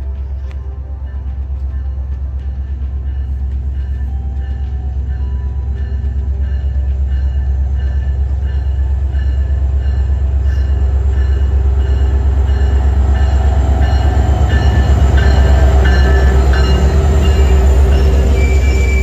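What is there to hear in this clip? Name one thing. A diesel locomotive rumbles closer, loudest as it passes close by.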